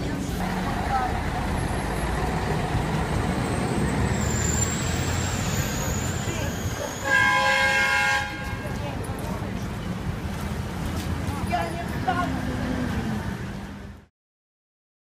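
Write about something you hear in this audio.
Traffic and people bustle along a street outdoors.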